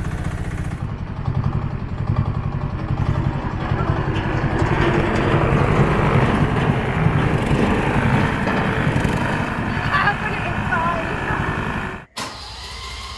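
A small dumper engine putters and rattles close by.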